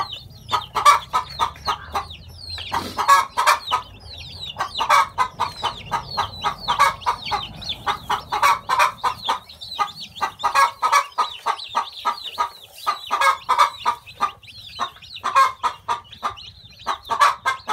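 A hen clucks softly.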